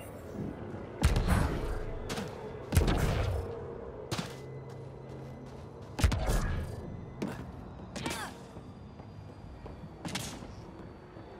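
Heavy boots thud and land hard on a metal floor.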